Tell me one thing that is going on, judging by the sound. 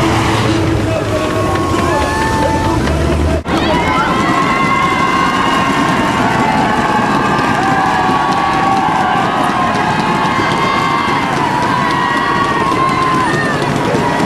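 A large crowd cheers, whistles and shouts loudly outdoors.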